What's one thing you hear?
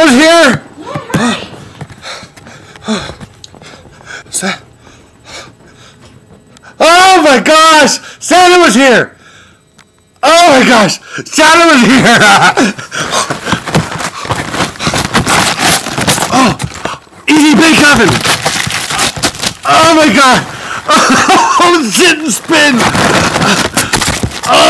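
A man shouts and sings loudly and wildly close to a microphone, distorting it.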